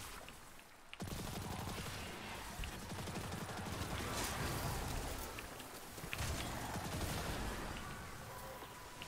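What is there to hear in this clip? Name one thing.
Gunfire from a video game crackles and bangs.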